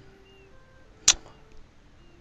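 A game interface gives a short click.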